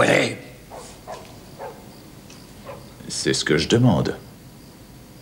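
A man speaks tensely and loudly, close by.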